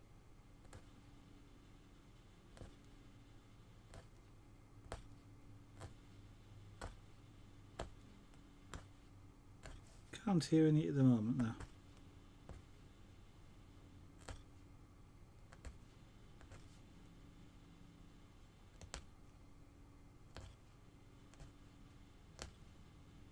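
A needle tool pokes through cloth with soft, regular clicks.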